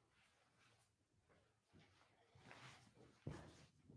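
Clothing rustles right up close.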